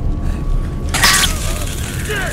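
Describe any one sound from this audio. An electric weapon fires with a sharp crackling burst.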